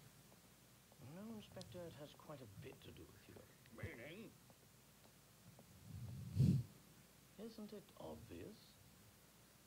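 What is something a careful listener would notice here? A young woman talks calmly into a microphone.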